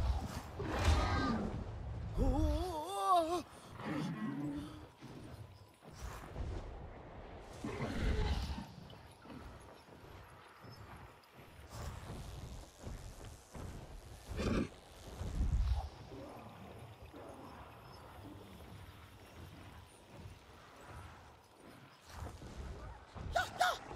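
A large winged creature beats its wings with deep, gusting whooshes.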